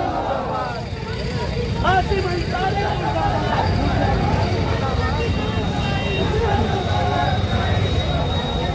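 A crowd of men chants and shouts loudly outdoors.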